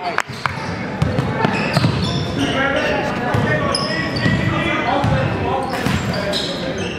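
Spectators and players call out, echoing in a large gym.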